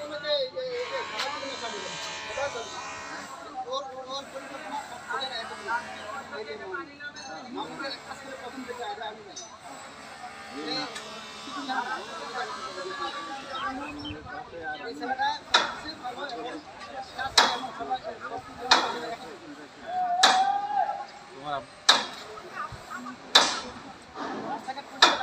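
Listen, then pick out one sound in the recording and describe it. Several men talk and call out to each other outdoors, some way off.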